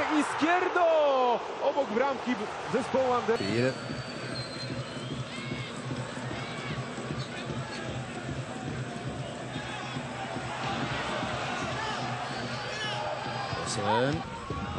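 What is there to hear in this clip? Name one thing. A large crowd roars and chants in an open stadium.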